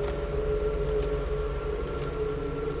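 Footsteps tap slowly on wooden boards.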